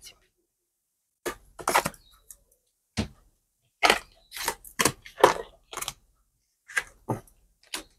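Cards slide and tap softly as they are gathered up.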